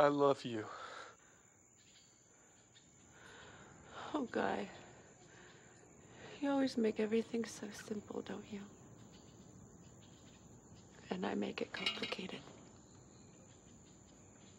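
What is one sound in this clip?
A young woman speaks softly and tearfully, close by.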